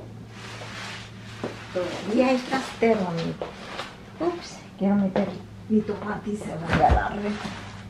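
A middle-aged woman talks calmly close by.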